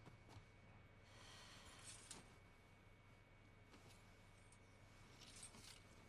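Clothes on hangers rustle.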